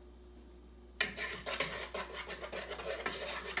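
A spoon scrapes and stirs briskly in a bowl.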